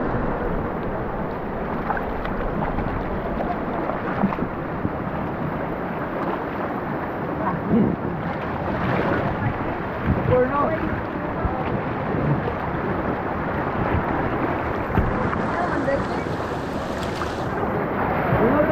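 Water sloshes against rubber tubes.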